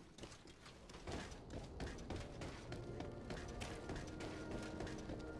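Footsteps run on stone outdoors.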